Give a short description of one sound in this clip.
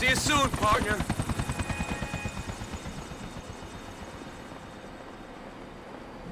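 A helicopter rotor thumps rapidly and slowly winds down.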